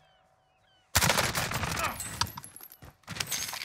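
Rapid gunfire rattles from a game.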